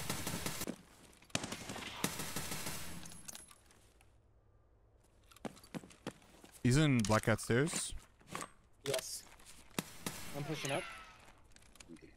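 Footsteps crunch on gravel and debris.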